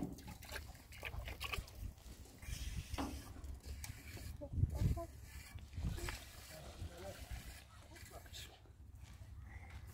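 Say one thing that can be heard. A shovel scrapes and digs into sand.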